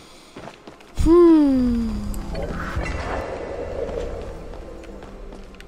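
A magical portal whooshes with a falling, humming tone and a low rumble.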